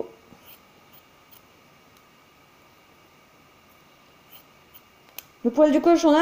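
Scissors snip through fur.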